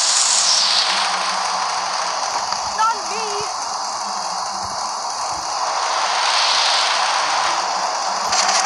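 Heavy rain hisses steadily.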